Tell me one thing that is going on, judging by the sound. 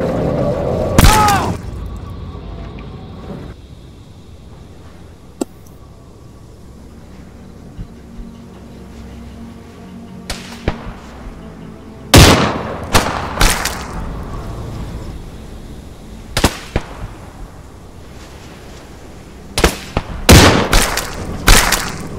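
Rifle shots crack loudly and echo outdoors, one after another.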